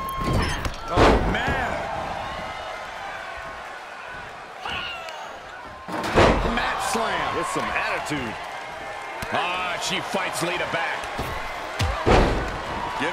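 Heavy bodies slam down hard onto a wrestling mat.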